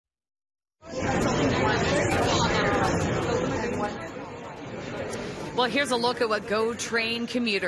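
A large crowd murmurs and chatters loudly in an echoing hall.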